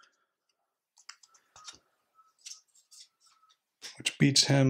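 Small plastic game pieces click softly as they are moved on a board.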